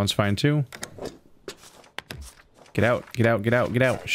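A stamp thuds down onto paper.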